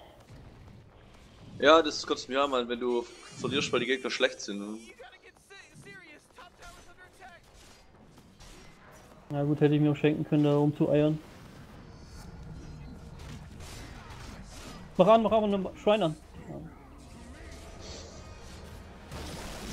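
Fantasy spell effects whoosh and crackle during a battle.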